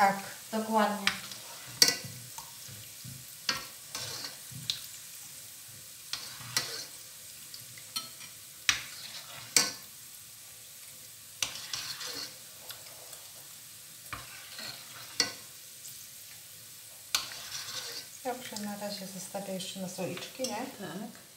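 Soup splashes softly as it is ladled into a bowl.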